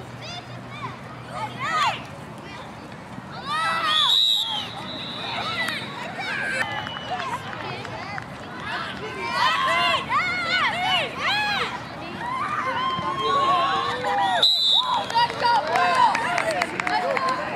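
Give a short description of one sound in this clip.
Young people shout and cheer outdoors, some close and some farther off.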